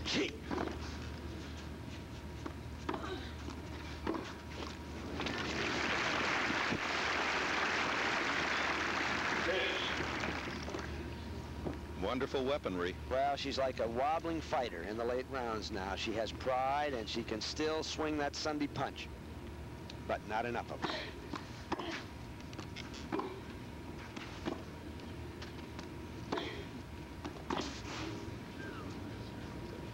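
A tennis ball is struck with sharp pops.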